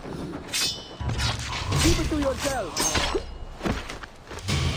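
A scuffle breaks out close by with heavy thuds.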